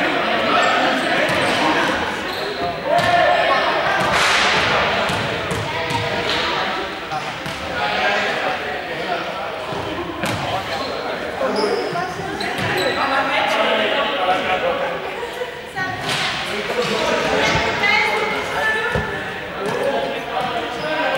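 Children shout and chatter throughout a large echoing hall.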